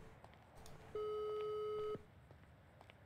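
A phone call's ringing tone beeps once, steady and clear.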